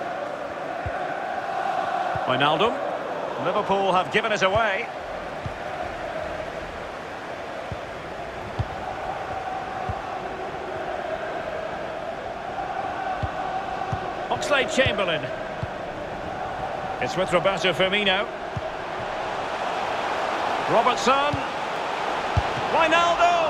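A football is kicked with short dull thuds.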